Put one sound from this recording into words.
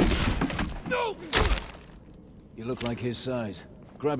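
Heavy blows thud as a man stomps on another man.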